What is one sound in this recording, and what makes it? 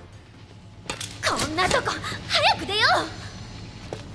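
A young woman speaks with impatience.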